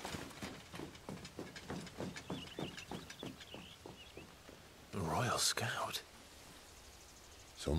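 A man speaks in a deep, relaxed voice.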